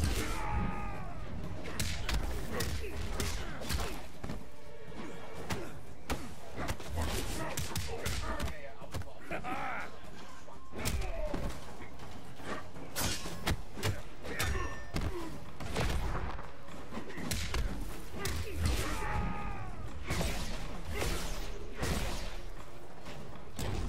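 Punches and kicks land with heavy thuds, over and over.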